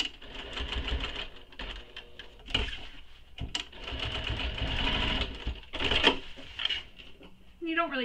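A sewing machine runs with a fast, rattling whir.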